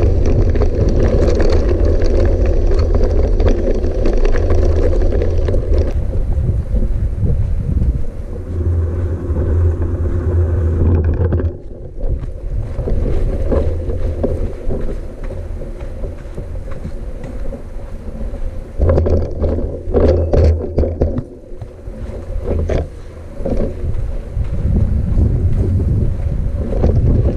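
Tyres crunch over gravel and sand.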